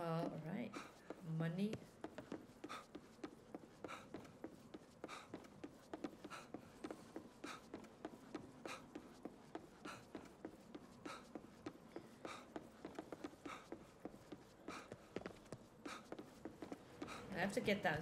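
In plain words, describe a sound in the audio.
Quick footsteps run steadily on a hard floor.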